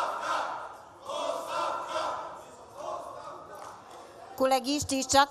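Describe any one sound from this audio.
A murmur of voices fills a large hall.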